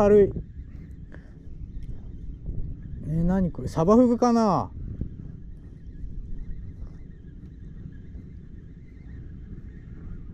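A fishing reel winds with a soft whirring.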